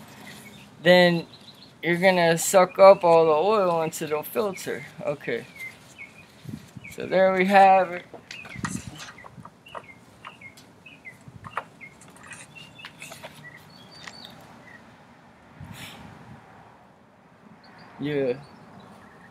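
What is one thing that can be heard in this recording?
A young man talks close by, calmly explaining.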